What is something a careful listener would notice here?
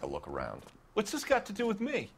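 An older man asks a question with indignation.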